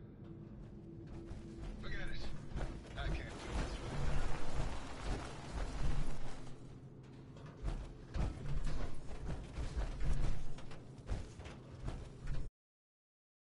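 Heavy metal footsteps clank and thud on a hard floor.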